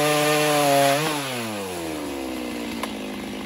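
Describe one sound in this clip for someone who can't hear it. A chainsaw engine winds down and idles lower after the cut.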